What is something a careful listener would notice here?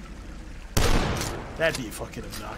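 A shotgun fires a loud blast with a rumbling echo.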